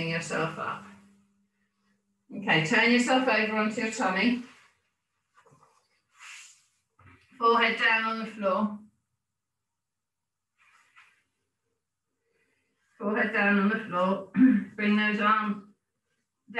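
A woman talks calmly and clearly, close by, giving instructions in short bursts.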